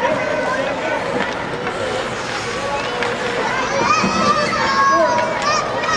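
Young children shout and call out in a large echoing hall.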